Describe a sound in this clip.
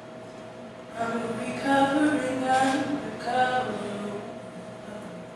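A young woman sings into a microphone in an echoing hall.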